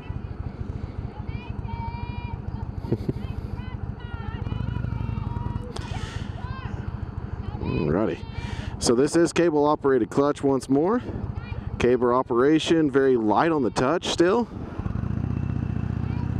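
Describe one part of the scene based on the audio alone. A motorcycle engine idles with a low, steady rumble close by.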